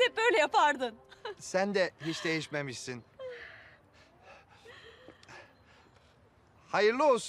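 A woman speaks warmly and brightly up close.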